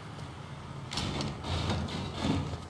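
A car door opens with a clunk.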